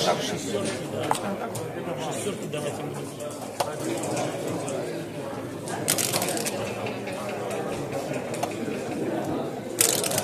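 Plastic game pieces click against a board.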